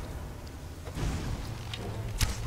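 A blast bursts with a loud crackling boom.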